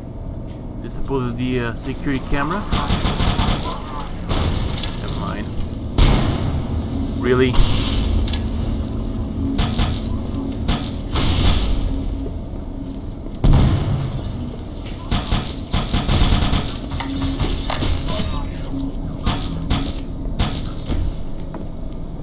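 Alien weapon blasts fire in sharp bursts.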